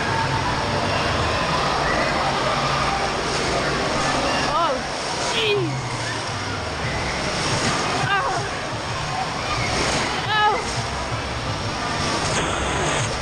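Waves surge and splash loudly in a large echoing hall.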